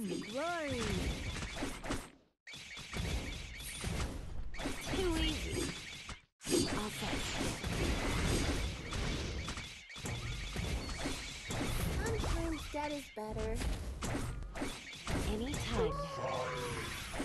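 Magic blasts and battle clashes sound over and over.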